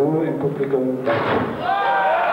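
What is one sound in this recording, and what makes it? Stacked wooden boards crack and collapse with a loud crash.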